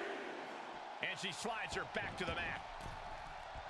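Heavy thuds of bodies hitting a wrestling ring mat land in a quick burst.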